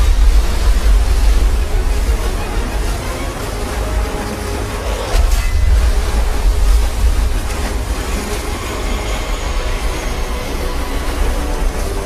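A motorboat engine roars.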